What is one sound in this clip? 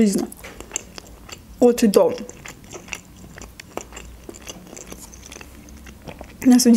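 A young woman chews food with soft, wet mouth sounds close to a microphone.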